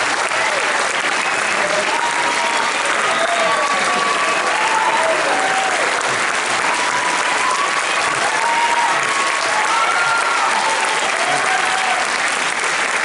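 Shrill whistles cut through the cheering.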